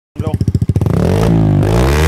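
A motorcycle engine cranks and starts up.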